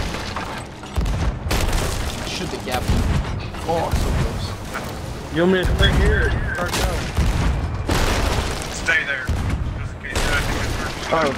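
Cannons fire with deep, booming blasts.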